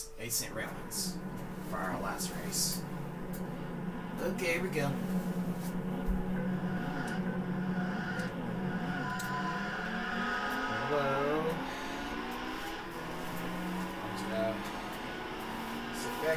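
A racing car engine roars and revs through a television loudspeaker.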